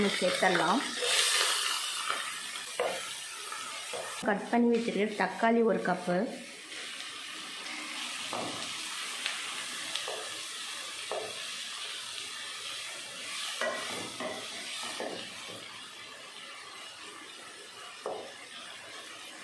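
Food sizzles steadily as it fries in a pan.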